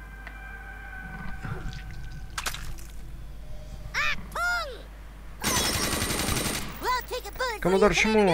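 Water pours and splashes from a broken pipe.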